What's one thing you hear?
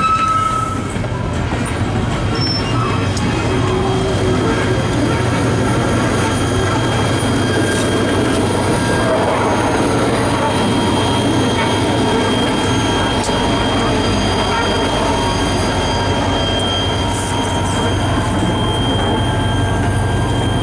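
A diesel locomotive engine roars as it passes and moves away.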